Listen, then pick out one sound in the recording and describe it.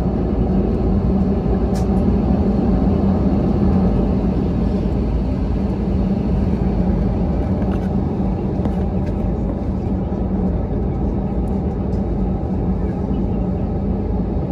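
A jet airliner's engines roar steadily, heard from inside the cabin.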